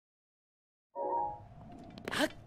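A game menu closes with a soft chime.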